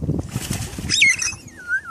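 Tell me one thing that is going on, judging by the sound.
An animal splashes as it swims in the water.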